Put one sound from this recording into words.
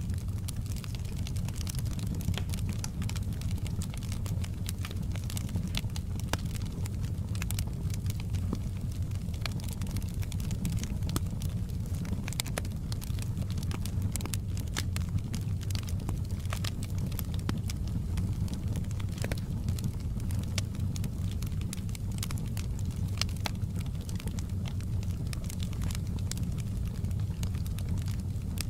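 Flames roar with a low, steady rumble.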